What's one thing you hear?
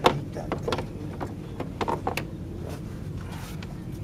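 A socket ratchet clicks as a bolt is turned.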